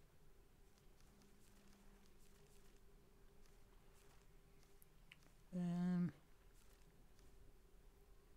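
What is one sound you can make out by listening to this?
Paper pages flip over quickly, one after another.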